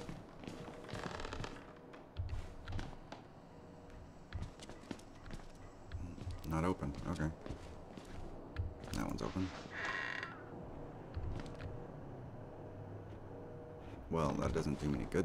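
Footsteps thud softly on a carpeted floor.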